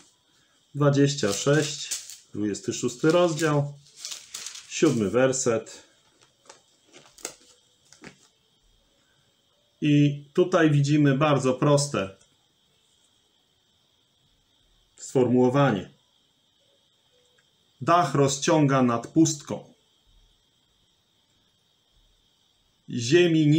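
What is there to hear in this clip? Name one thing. A man speaks calmly and close to the microphone, in short bursts with pauses.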